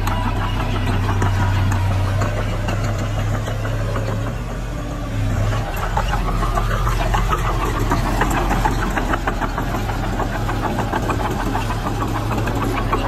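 Metal tracks clank and squeak as a bulldozer moves.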